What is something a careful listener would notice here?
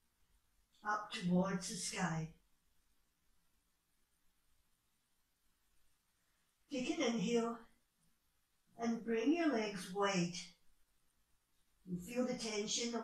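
A woman speaks calmly nearby in short phrases with pauses.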